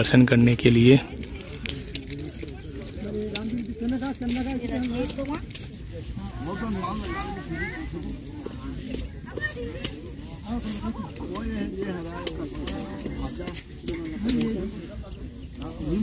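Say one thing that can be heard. Several women and children talk and chatter nearby outdoors.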